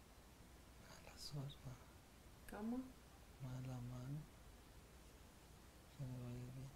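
A middle-aged woman speaks quietly nearby.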